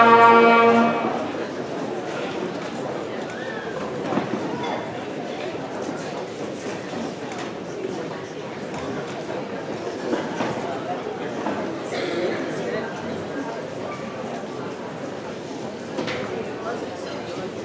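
A crowd of people chatters at tables in a large hall.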